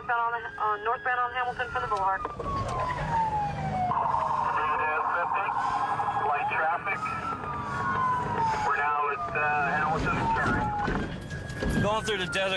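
Police sirens wail and yelp close by.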